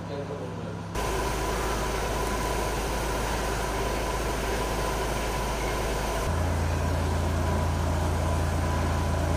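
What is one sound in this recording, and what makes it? A hose sprays water onto pavement outdoors.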